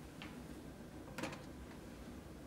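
A metal bowl clinks on a wooden floor.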